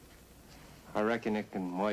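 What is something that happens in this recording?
A second man answers in a low, firm voice.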